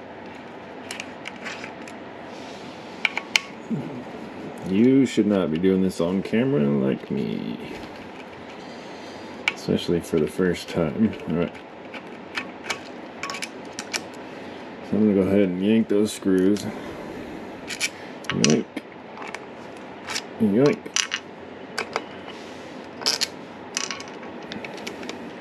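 Small wires and plastic parts click and rattle under handling, close by.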